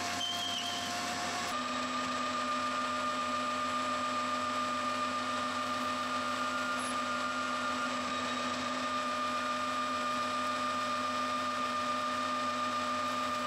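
A cutting tool scrapes and hisses against turning metal.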